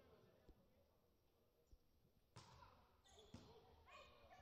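A volleyball is struck with sharp slaps.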